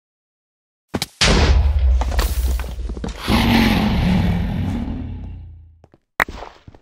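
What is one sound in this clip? A loud crashing burst rings out as a bed breaks apart.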